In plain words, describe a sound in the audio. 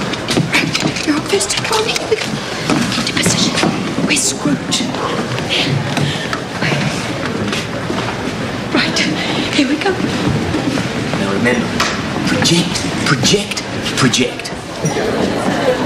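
A man speaks quietly and hurriedly nearby.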